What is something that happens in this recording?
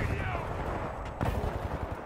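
An energy weapon fires with a sharp zap.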